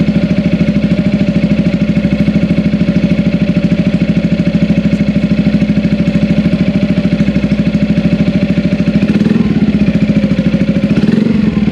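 A motorcycle engine idles close by with a steady, throbbing exhaust note.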